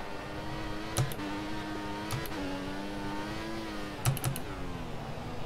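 A Formula One race car snaps through gear shifts.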